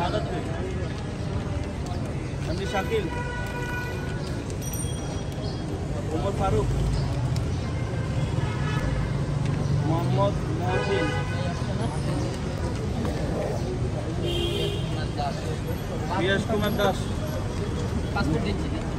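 Several men talk nearby.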